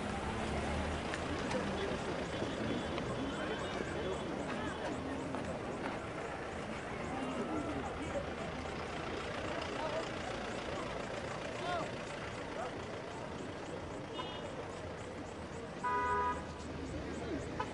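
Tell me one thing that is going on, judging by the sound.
Cars drive slowly past.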